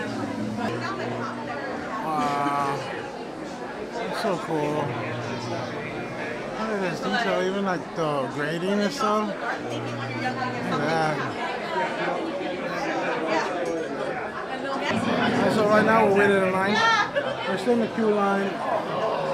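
A crowd murmurs in a large echoing space.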